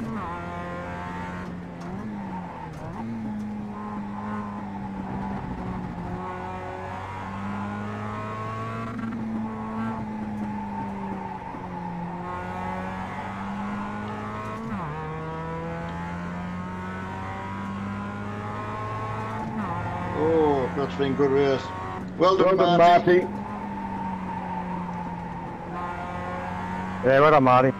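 A racing car engine hums and revs up and down as gears shift.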